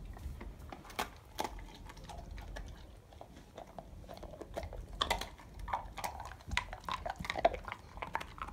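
A dog chews and gnaws on something close by, with wet clicking sounds.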